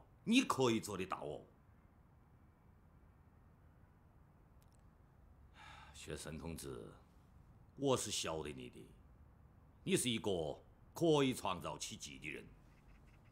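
A middle-aged man speaks slowly and firmly.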